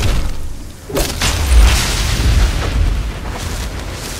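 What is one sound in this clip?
Ice shatters and crumbles as a creature collapses.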